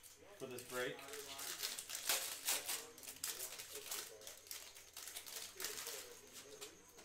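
Plastic wrapping crinkles and tears as it is handled.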